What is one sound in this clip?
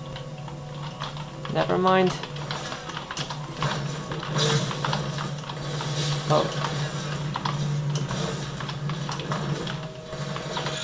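Gunfire and game sounds play loudly through speakers.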